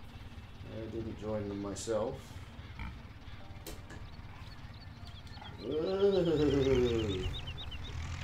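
Pigs grunt nearby.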